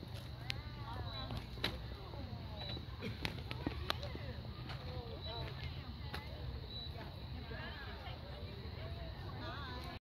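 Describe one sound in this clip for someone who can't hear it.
Young children chatter and call out excitedly at a distance outdoors.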